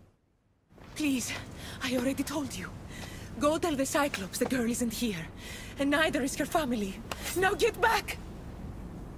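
A young woman pleads anxiously and fearfully.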